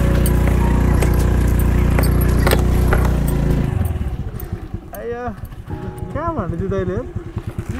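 A motorbike engine rumbles close by, then drops to a low putter.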